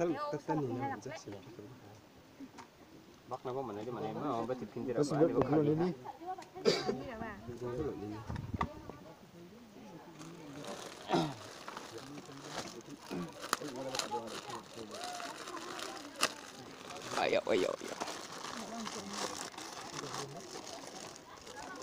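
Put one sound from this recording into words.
Plastic snack wrappers crinkle.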